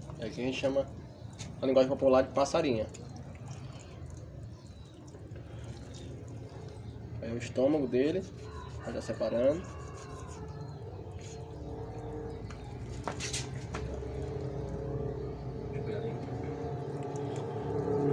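A knife slices through raw meat with soft wet sounds.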